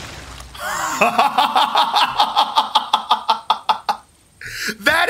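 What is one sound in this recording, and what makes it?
A man laughs loudly and heartily close to a microphone.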